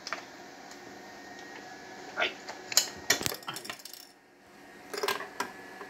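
Hands click and knock against a plastic casing of a machine.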